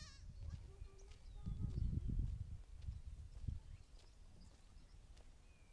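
A woman's footsteps crunch on dry ground outdoors.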